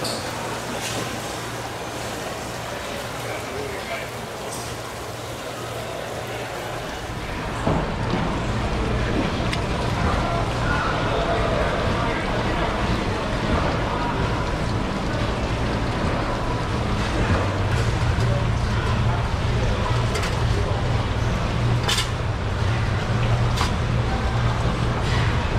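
A kitchen knife slices through raw fish on a plastic cutting board.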